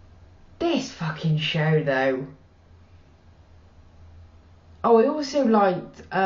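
A woman speaks calmly and close by, with a short pause.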